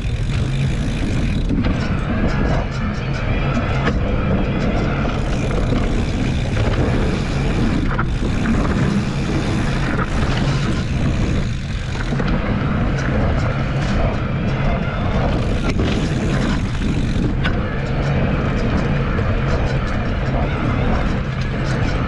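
Wind rumbles against a moving microphone.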